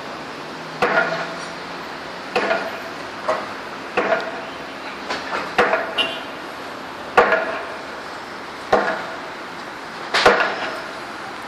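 Traffic hums steadily in the distance, outdoors.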